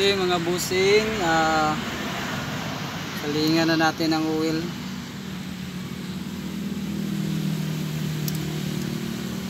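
A plastic panel rattles and clicks as hands pull at it.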